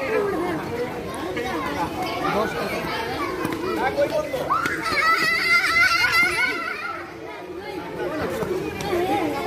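Several young men shout and call out to each other close by, outdoors.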